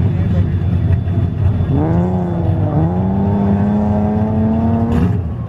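Car tyres squeal on pavement.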